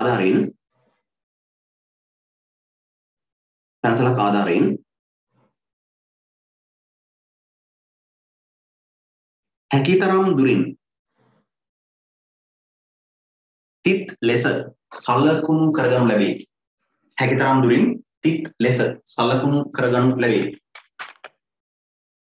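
A man speaks calmly and close to a microphone, with long pauses between phrases.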